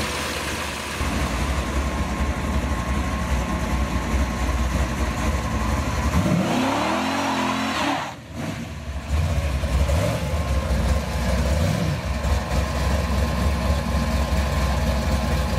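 A car engine rumbles loudly as the car rolls slowly past.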